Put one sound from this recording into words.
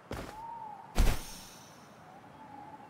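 A heavy thud lands, followed by a rushing whoosh.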